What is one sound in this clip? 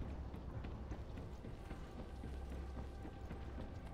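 Footsteps thud on a hard metal floor.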